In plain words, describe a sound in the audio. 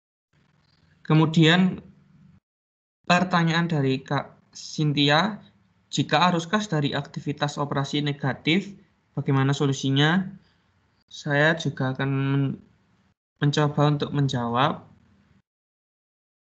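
A young man speaks over an online call, in short bursts with pauses.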